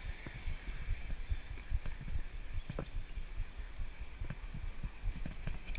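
A bicycle rattles and clicks over the road.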